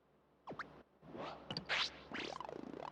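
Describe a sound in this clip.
Electronic whooshing effects sweep up and down in pitch.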